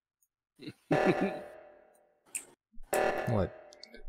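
An alarm blares.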